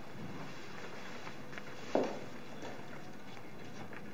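Cloth rustles as a garment is handled.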